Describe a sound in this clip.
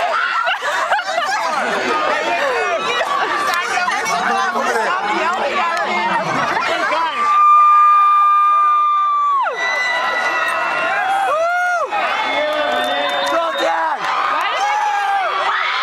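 A crowd of young men and women shouts, cheers and chatters excitedly.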